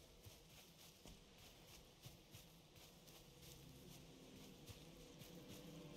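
Footsteps rustle steadily through grass.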